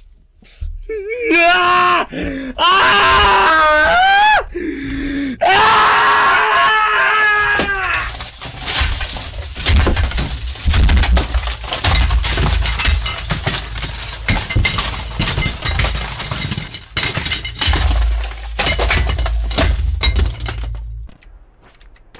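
A man yells and wails loudly into a close microphone.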